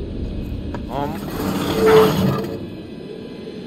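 A metal gate creaks and rattles as it is pushed open.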